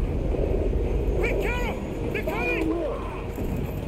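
A young man shouts urgently.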